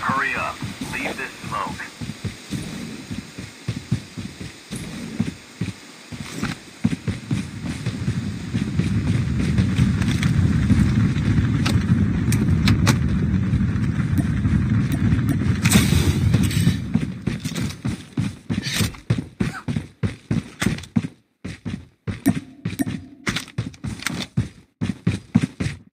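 Footsteps run quickly over dry dirt.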